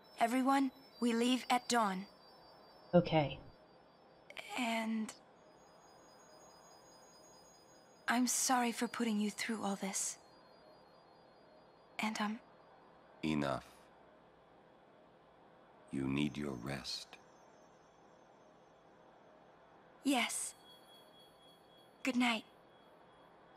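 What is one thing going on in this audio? A young woman speaks briefly close to a microphone.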